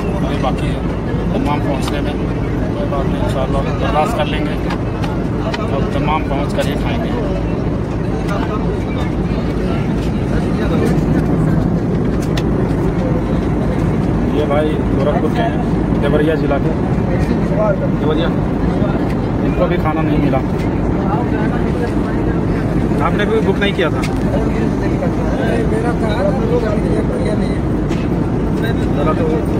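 A man talks close to a microphone, calmly and steadily.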